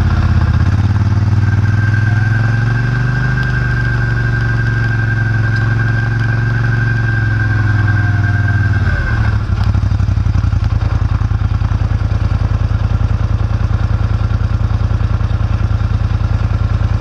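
A tractor engine hums loudly close by, then slows to a steady chugging idle.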